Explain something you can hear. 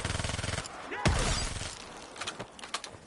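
An electric weapon crackles and zaps.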